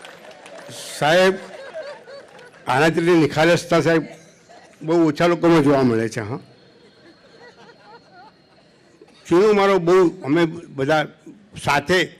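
An elderly man speaks calmly into a microphone over loudspeakers.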